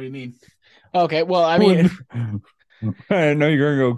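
A man laughs through a microphone over an online call.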